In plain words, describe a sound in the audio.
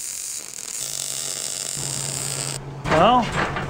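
An arc welder crackles and hisses steadily.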